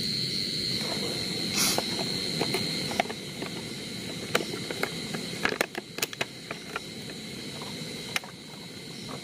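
Small objects click and rattle in a man's hands.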